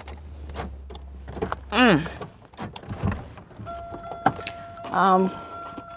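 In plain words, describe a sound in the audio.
Keys rattle and click in a car's ignition.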